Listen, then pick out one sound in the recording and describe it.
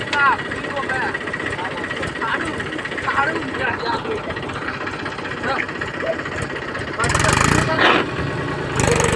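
A diesel tractor engine labours under load.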